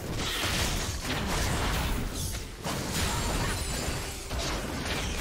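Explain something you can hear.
Fantasy battle effects crackle and clash with bursts of magic and blows.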